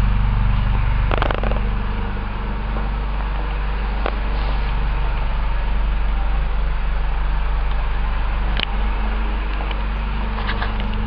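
A car engine idles with a steady, low rumble.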